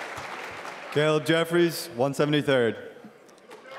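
A man announces loudly through a microphone, echoing in the hall.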